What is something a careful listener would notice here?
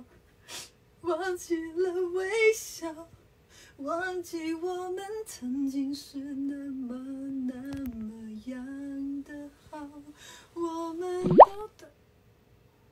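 A young woman sings softly close by.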